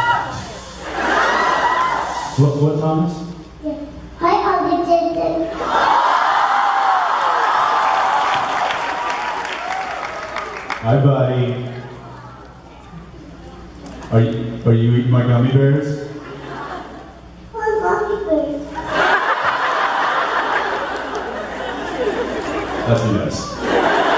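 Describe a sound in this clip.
A crowd laughs and cheers.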